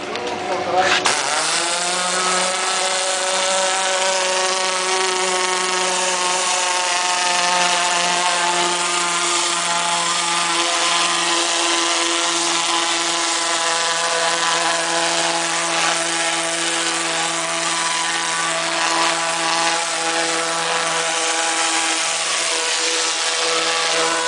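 A pressure washer motor drones steadily.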